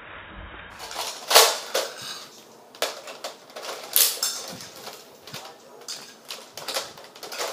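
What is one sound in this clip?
A toy blaster clicks and clacks as it is cocked.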